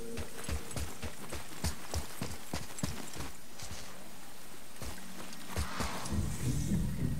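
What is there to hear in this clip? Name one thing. Heavy footsteps thud on stone at a steady pace.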